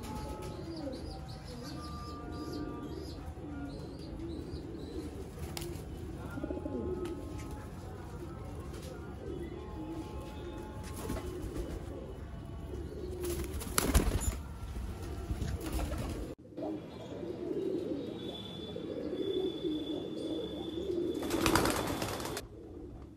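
Pigeons coo with low, throaty warbles.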